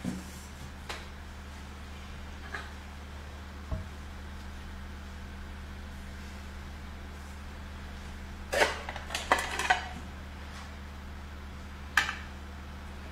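Plates clink against a table.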